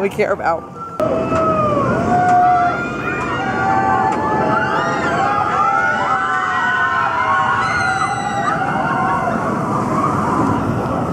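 Riders on a roller coaster scream.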